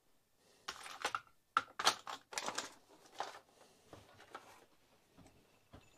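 Small metal parts clink and rattle in hands close by.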